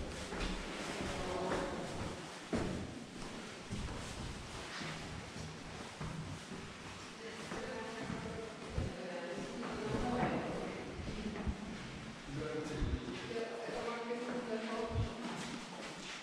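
Footsteps tread on a hard floor in an echoing stairwell.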